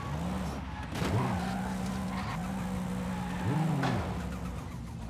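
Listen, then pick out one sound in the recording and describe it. Tyres skid and squeal on a road.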